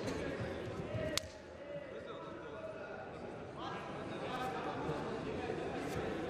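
Two men grapple and thud onto a mat.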